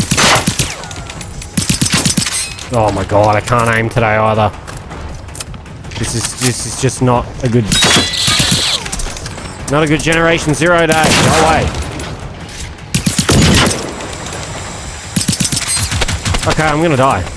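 Rapid gunshots crack in short bursts.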